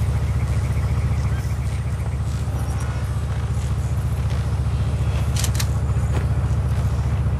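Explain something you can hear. An SUV engine idles in a video game.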